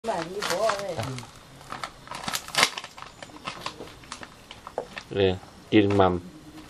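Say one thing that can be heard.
A dry husk crinkles and rustles as it is peeled.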